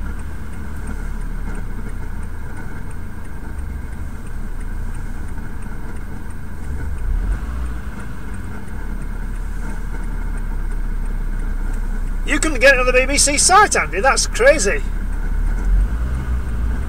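A car engine idles with a low, steady rumble, heard from inside the car.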